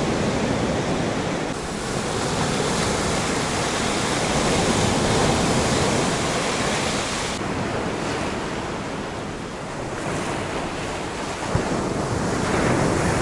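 Waves break and wash up onto the shore in a steady roar.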